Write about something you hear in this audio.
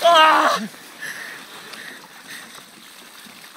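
Water splashes and pours over a man.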